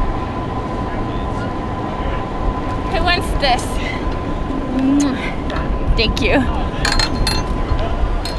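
A young woman talks and laughs excitedly close by.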